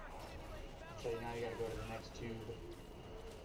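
A loud explosion bursts with crackling debris.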